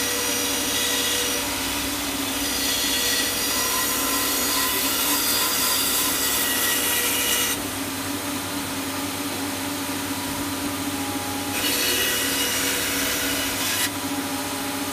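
A band saw blade cuts through wood.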